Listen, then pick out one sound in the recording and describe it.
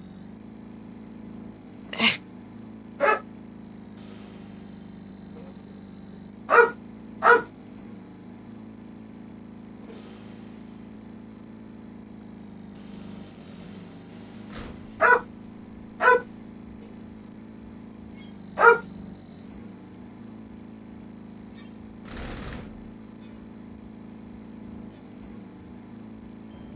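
A small mower engine hums steadily.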